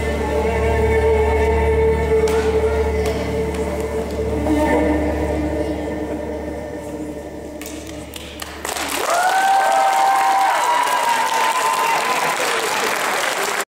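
Feet tap and shuffle on a wooden stage.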